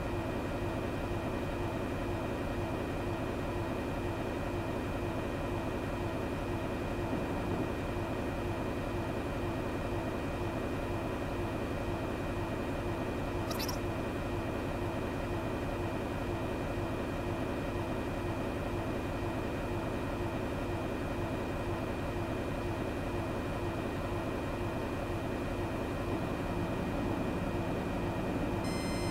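The jet engines of a twin-engine airliner drone steadily in flight, heard from the cockpit.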